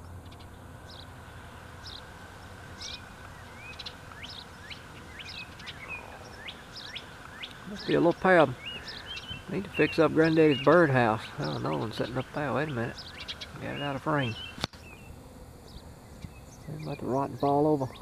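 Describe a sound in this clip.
Small birds chirp repeatedly nearby.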